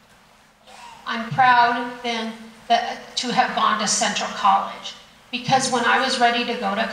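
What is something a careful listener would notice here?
A woman speaks with animation into a microphone over loudspeakers in a large room.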